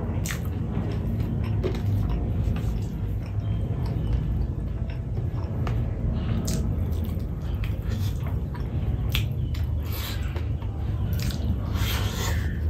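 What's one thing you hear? A man chews food with his mouth close to the microphone.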